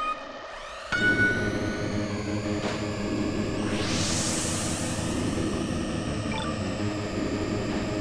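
Racing engines roar and whine at high speed.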